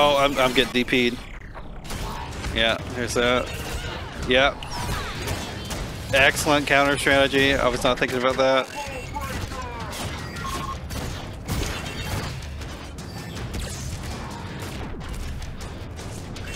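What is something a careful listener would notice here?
Punches, kicks and magical blasts thud and whoosh in a video game fight.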